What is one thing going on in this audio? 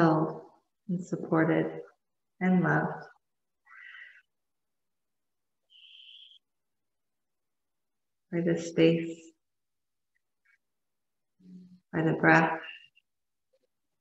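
A woman speaks calmly and softly, with long pauses.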